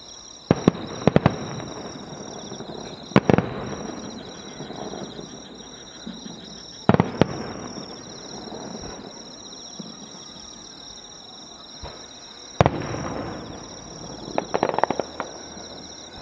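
Fireworks crackle and pop after bursting.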